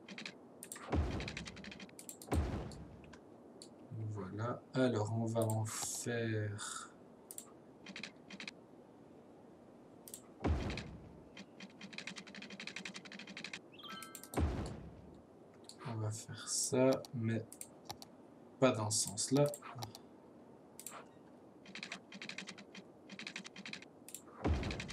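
Short clicks and building sounds ring out as roads are placed in a city-building game.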